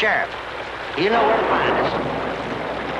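A woman calls out loudly.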